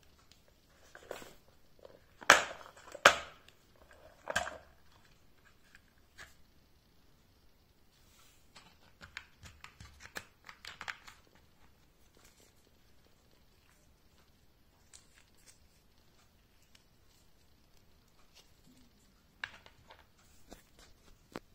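Small metal and plastic parts rattle and click inside a plastic case.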